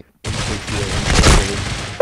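A rifle fires a burst of rapid shots.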